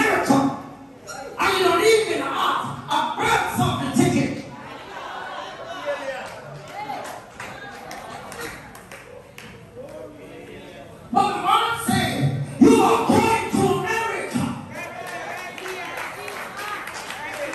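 A woman preaches loudly and with fervour through a microphone in a large echoing room.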